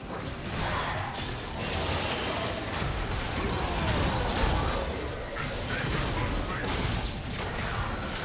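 Game spells whoosh and crackle as characters fight.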